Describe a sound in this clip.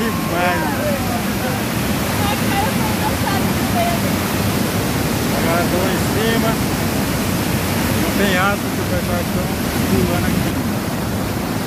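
A waterfall rushes loudly and steadily outdoors.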